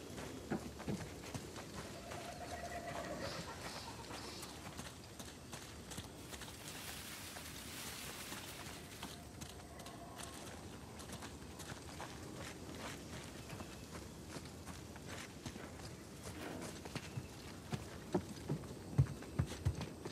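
Footsteps crunch over grass and earth.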